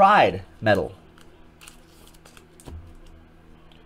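Trading cards shuffle and tap softly in a hand.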